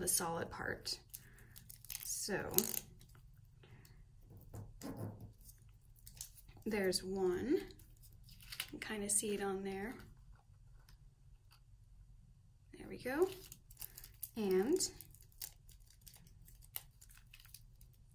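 Sticky tape peels off with a short tearing sound.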